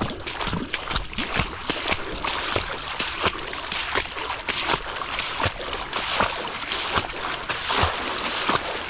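A stone splashes into shallow water close by.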